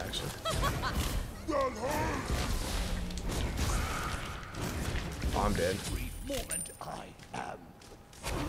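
Magic blasts crackle and whoosh in a fight.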